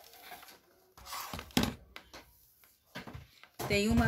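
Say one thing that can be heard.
A plastic tool clatters onto a table.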